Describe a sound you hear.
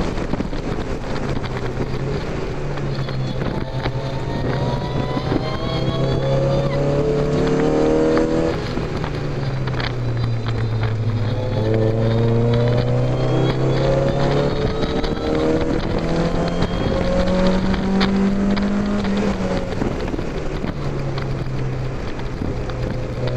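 Wind rushes loudly past an open car.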